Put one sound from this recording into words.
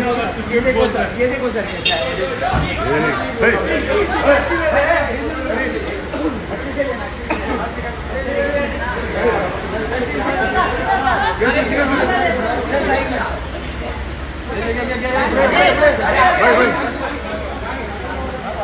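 A crowd of young men and women chatter and call out excitedly nearby.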